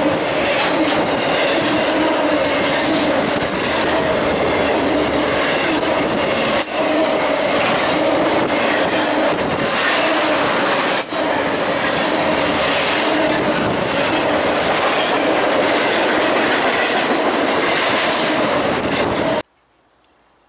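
A freight train rumbles past close by, its wheels clattering and squealing on the rails.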